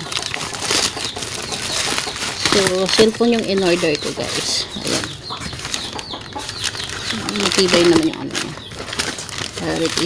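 A plastic-wrapped package crackles as it is handled.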